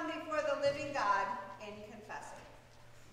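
A woman speaks calmly through a microphone in a large echoing room.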